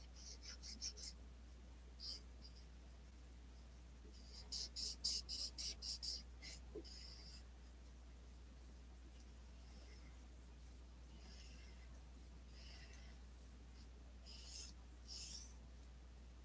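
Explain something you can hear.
A marker tip scratches in quick strokes across paper.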